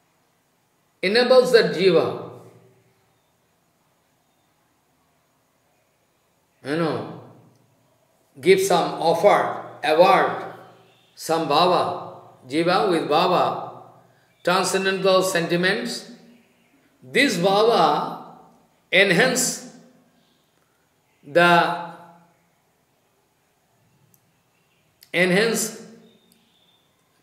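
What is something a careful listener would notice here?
An elderly man speaks calmly in short phrases with pauses, close to a microphone.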